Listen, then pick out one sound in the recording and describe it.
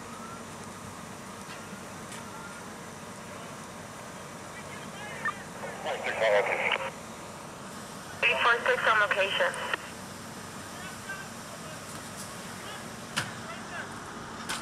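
A fire engine idles with a steady low rumble.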